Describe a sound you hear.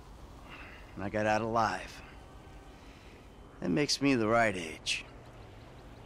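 A second man answers in a calm, low voice, close by.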